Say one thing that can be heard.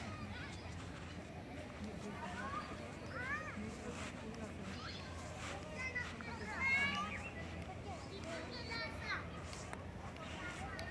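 Footsteps brush softly through grass.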